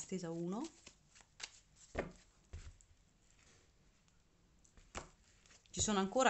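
Playing cards are shuffled and tapped together with soft flicks and clicks.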